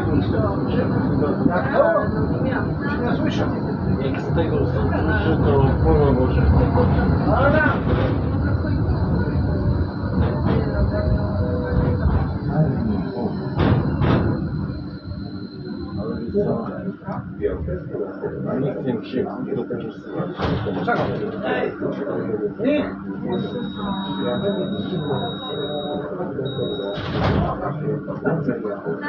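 A tram's motor hums steadily.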